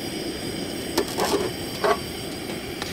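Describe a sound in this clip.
A metal pot clanks.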